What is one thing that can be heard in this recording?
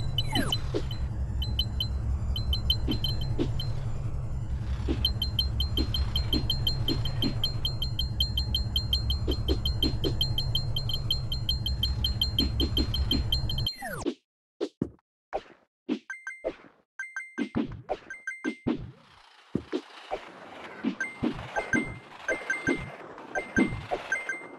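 Coins chime in quick, bright pings as they are collected.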